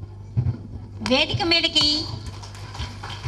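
An elderly woman speaks briefly and warmly, close by.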